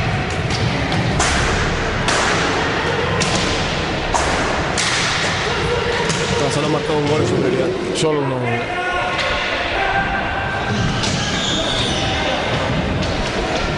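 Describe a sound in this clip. Roller skates rumble across a hard floor.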